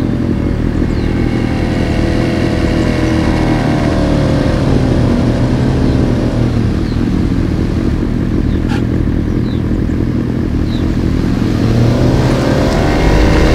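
Another motorcycle passes by nearby, its engine rising and falling.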